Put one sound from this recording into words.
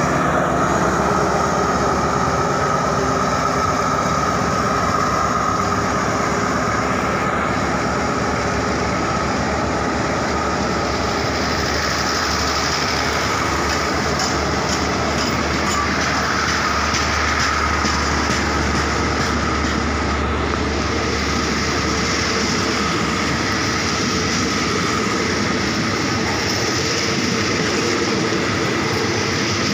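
A passenger train rumbles past close by, its wheels clattering on the rails.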